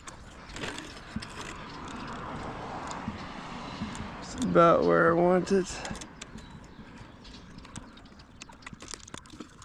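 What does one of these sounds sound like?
A metal hose clamp clicks and scrapes against a tree trunk.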